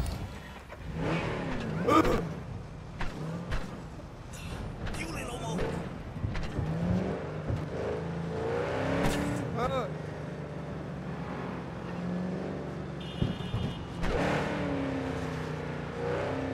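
A car engine starts and revs, rising and falling in pitch as the car drives off.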